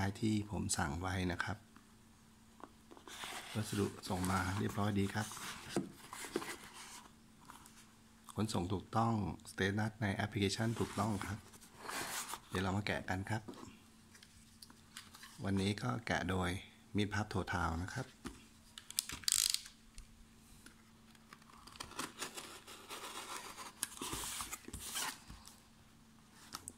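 Hands shift and tap a cardboard box on a hard surface.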